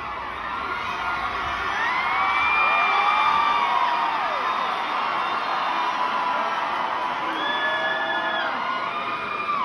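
A man raps loudly through loudspeakers in a large echoing hall.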